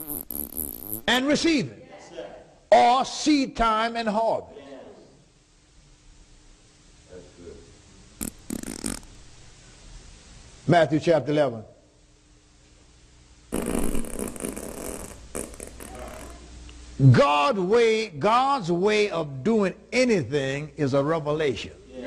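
A middle-aged man preaches with animation through a microphone.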